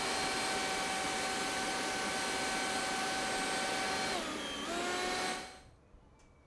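A leaf blower whirs steadily, then winds down.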